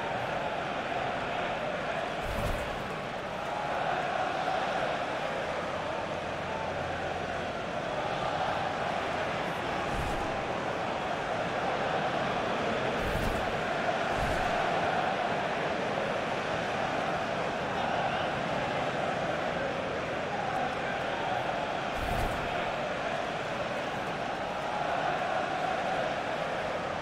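A large stadium crowd roars and chants steadily, echoing around the stands.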